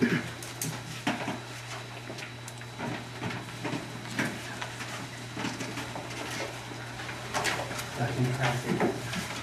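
A man speaks through a microphone in a room.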